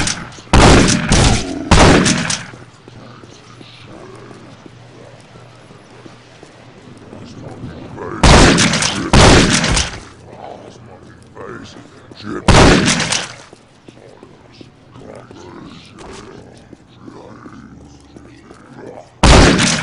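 A shotgun fires loud, booming blasts with a short echo.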